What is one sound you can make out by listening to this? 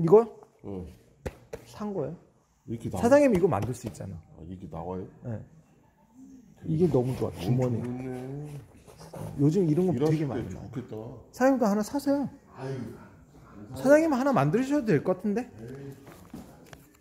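A middle-aged man talks close to the microphone in a relaxed, casual way.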